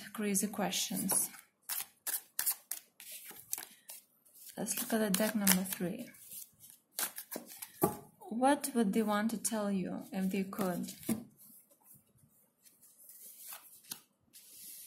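Playing cards flick and slap together as a deck is shuffled.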